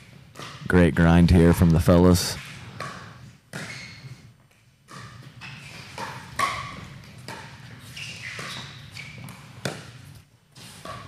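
Paddles hit a plastic ball back and forth with sharp hollow pops.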